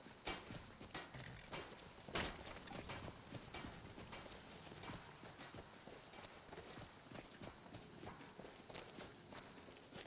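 Footsteps rustle through dry grass at a steady walking pace.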